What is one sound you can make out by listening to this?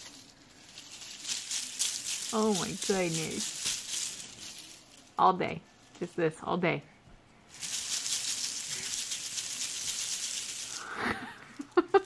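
A crinkly ribbon bow rustles.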